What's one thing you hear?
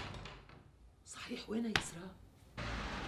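A woman speaks calmly indoors.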